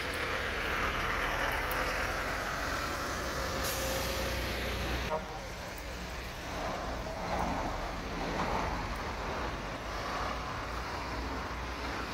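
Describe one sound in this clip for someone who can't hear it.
Cars and vans drive past on a nearby road.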